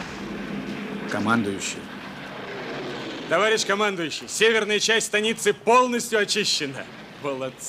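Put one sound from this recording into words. A man speaks urgently nearby.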